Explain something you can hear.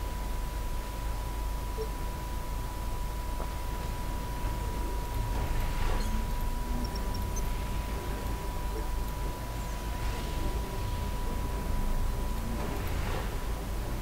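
Laser beams fire in short whooshing bursts.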